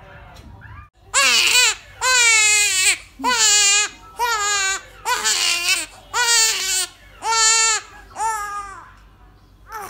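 A newborn baby cries loudly in bursts close by.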